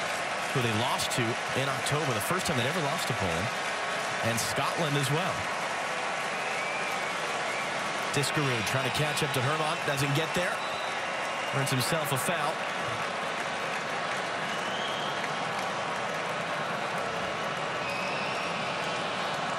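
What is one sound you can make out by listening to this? A large stadium crowd murmurs and cheers steadily outdoors.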